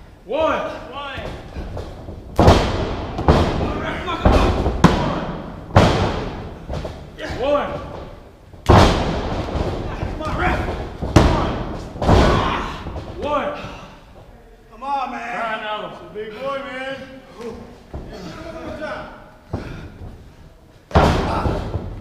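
Bodies thud heavily onto a springy wrestling ring mat.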